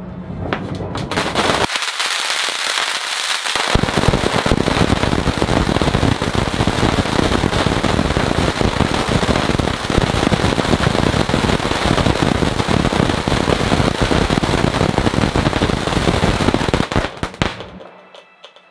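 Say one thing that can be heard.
A fountain firework roars and crackles as it sprays sparks.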